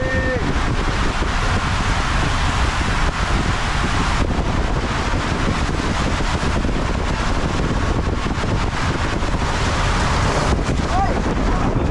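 Water rushes and splashes loudly through an enclosed slide tube.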